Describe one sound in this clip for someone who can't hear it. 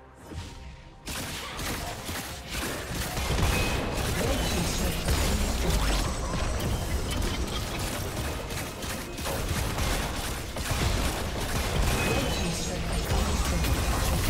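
Spells and weapons clash and burst in a game battle.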